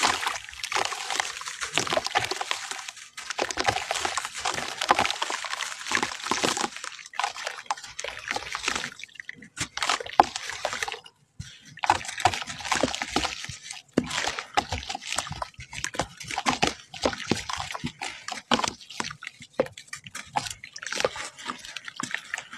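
Dry crumbly clay crumbles and hisses as hands rub it apart.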